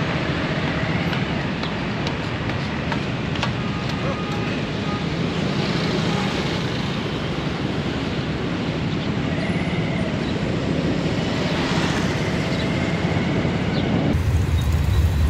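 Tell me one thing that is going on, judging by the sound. Traffic hums along a street outdoors.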